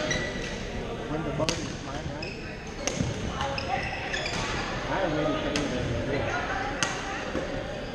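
Voices of many players murmur and echo in a large hall.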